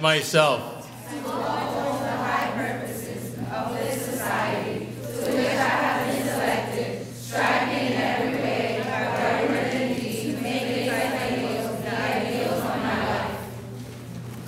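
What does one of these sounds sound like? A group of young girls recite together in a hall.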